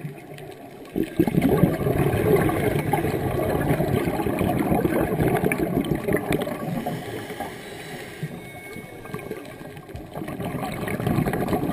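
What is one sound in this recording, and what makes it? Air bubbles from a scuba diver gurgle and rumble close by underwater.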